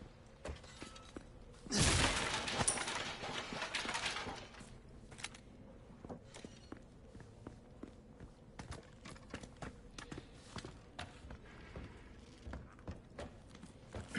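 Footsteps crunch on a hard floor.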